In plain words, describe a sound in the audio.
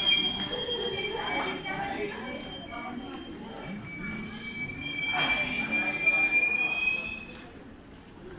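A train's brakes squeal with a high, steady whine as it rolls slowly.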